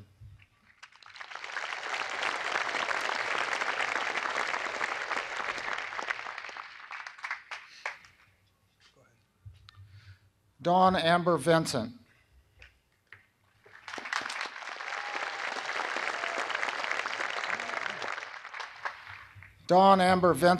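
A large crowd applauds outdoors.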